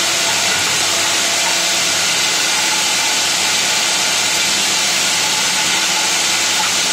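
A core drill whines loudly and steadily as it bores into a wall.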